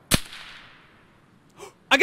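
A rifle shot cracks and echoes away.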